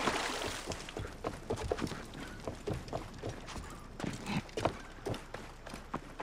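Footsteps thump on wooden planks.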